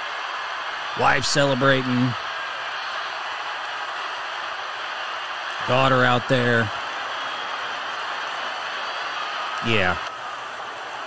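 A man speaks with animation into a close microphone, in short bursts.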